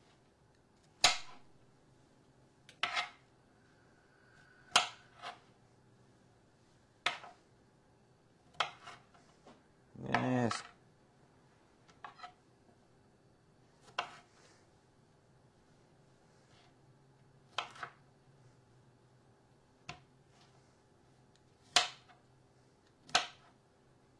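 A knife chops vegetables on a cutting board with sharp knocks.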